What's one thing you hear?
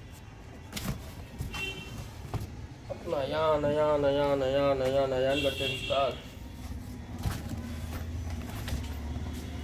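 Cardboard rustles and flaps as a box is handled.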